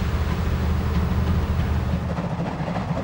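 A steam locomotive hisses loudly as it vents steam.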